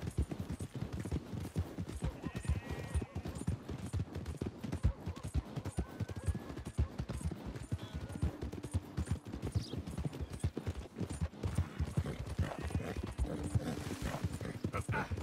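A horse gallops with hooves thudding quickly on a dirt track.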